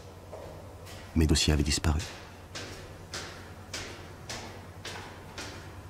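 Footsteps echo steadily on a hard stone floor in a large hall.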